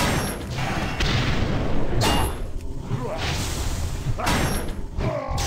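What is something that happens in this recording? Sword blows land repeatedly in a fight.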